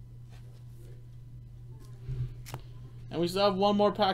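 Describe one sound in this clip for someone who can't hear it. Card packs rustle and crinkle as they are torn open.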